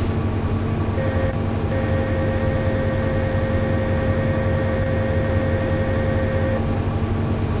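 A hydraulic arm whines as it moves.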